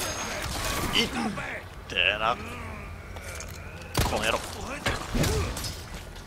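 A man grunts in pain.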